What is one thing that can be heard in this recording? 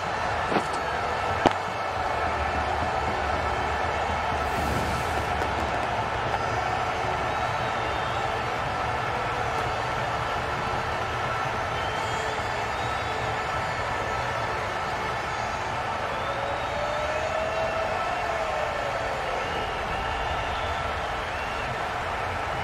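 A crowd murmurs and cheers steadily in a large stadium.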